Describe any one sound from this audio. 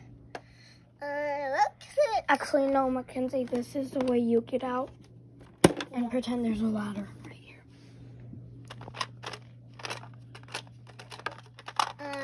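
Plastic toy parts click and knock as they are handled.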